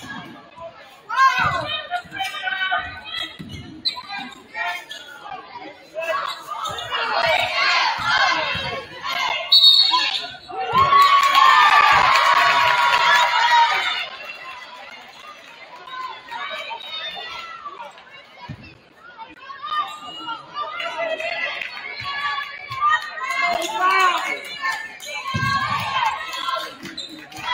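A crowd in a large echoing gym cheers and shouts.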